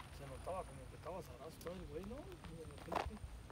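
A man talks nearby outdoors.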